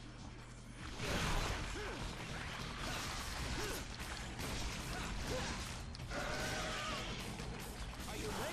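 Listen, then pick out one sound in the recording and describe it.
Blades slash and clash in quick bursts amid crunching impacts.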